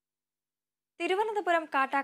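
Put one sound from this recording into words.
A young woman speaks clearly and evenly into a microphone, reading out.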